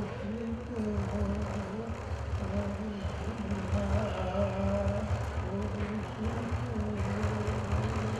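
An elderly man sings in a steady chant into a microphone.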